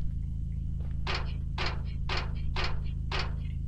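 Feet clank on a metal ladder.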